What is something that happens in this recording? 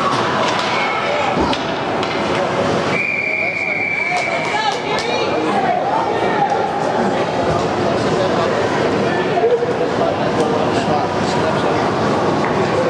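Skates scrape and glide across ice in a large echoing rink.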